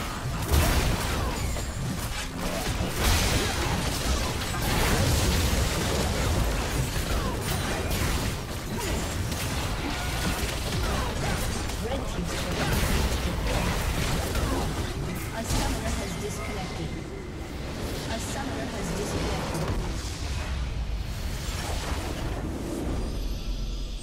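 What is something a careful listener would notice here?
Game spell effects crackle, blast and clash in a busy battle.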